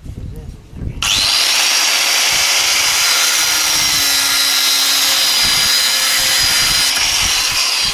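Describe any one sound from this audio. An angle grinder whines loudly as it cuts metal.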